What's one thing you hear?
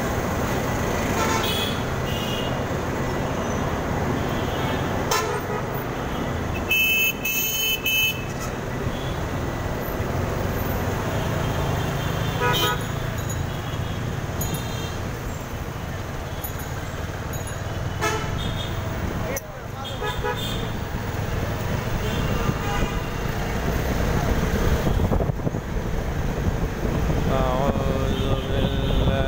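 A motorcycle rides through slow city traffic.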